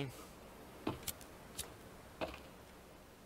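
Wooden logs knock into place.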